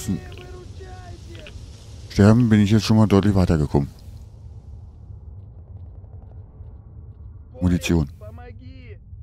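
Footsteps tread on a dirt path.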